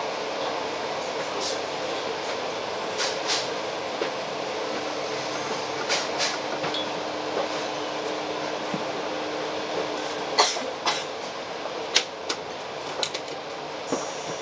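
A bus passes close by with a loud engine roar.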